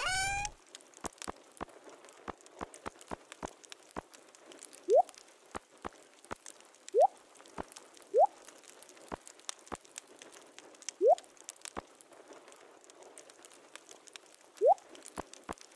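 Soft game clicks tick as a cursor passes over items.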